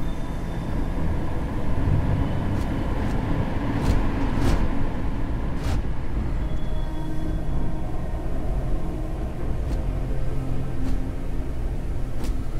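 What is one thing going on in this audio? Heavy footsteps thud slowly on a hard floor.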